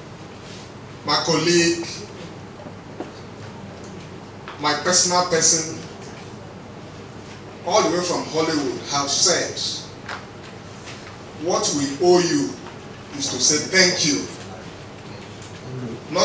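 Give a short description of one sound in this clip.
A man speaks into a microphone in short, deliberate phrases with pauses.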